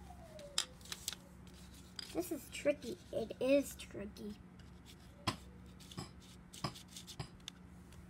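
Paper pages rustle and crinkle close by.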